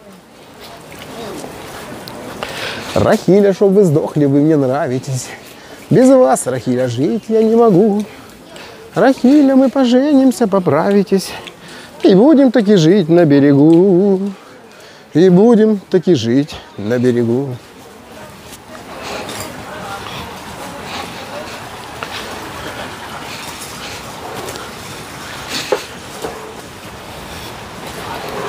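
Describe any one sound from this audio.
Footsteps splash and crunch on wet slush and snow.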